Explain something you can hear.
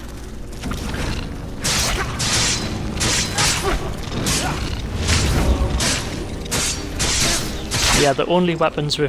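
Flames roar and crackle in loud bursts.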